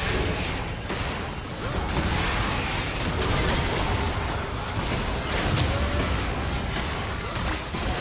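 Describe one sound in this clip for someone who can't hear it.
Sharp hits and blasts strike again and again.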